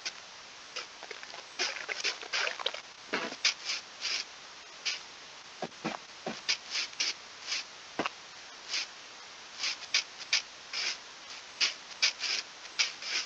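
Footsteps crunch on grass in quick, uneven bursts.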